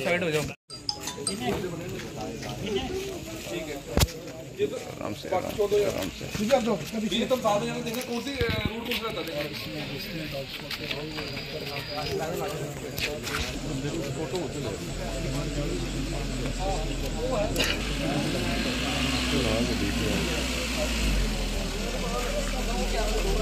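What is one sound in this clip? Men talk in low voices nearby.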